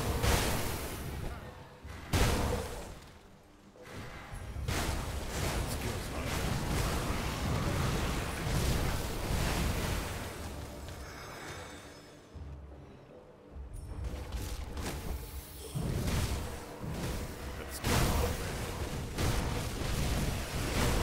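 Low, booming blasts rumble through the fighting.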